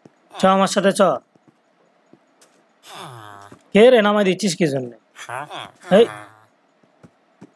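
Cartoonish villagers grunt and murmur in short nasal bursts.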